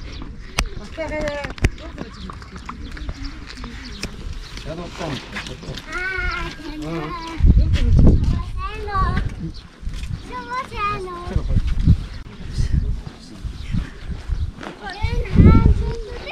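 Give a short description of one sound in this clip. A young child calls out in a high voice.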